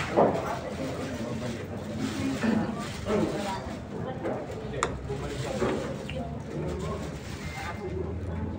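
Several men chatter nearby in a crowded room.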